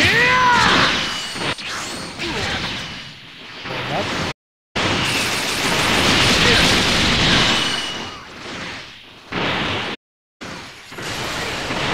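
Loud rumbling explosions boom.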